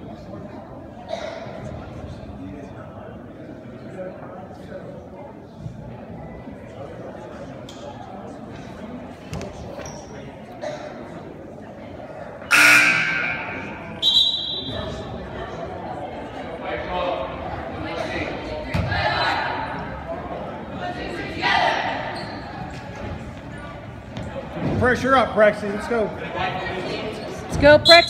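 Young women call out and chatter in an echoing gym.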